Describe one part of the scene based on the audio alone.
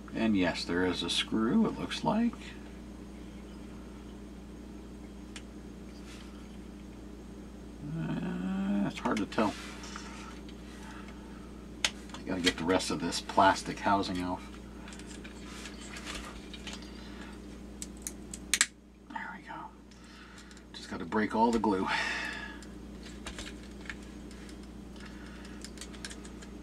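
Small plastic parts click and rattle as they are handled.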